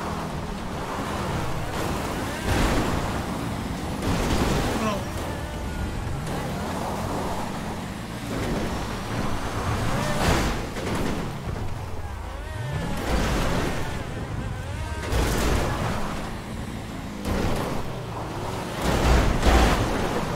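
Metal bangs as cars collide.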